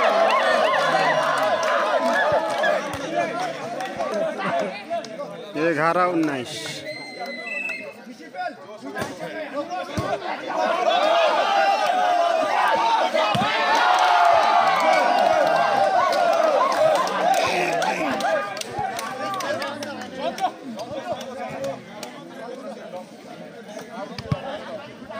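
A ball is struck with dull thuds.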